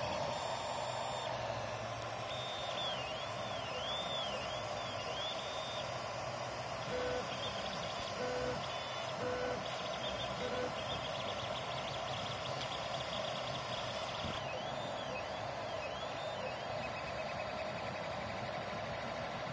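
A small cooling fan whirs steadily.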